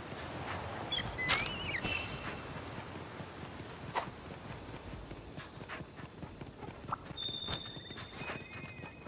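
Hooves clatter and thud quickly as a mount gallops.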